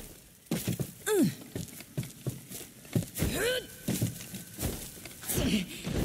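Hands and boots knock and scrape against rock while climbing.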